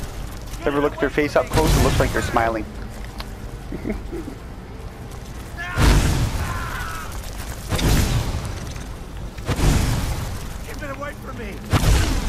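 A giant spider screeches and hisses.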